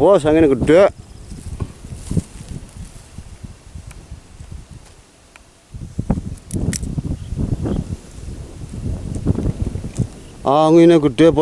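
Hands crumble and rub dry soil close by.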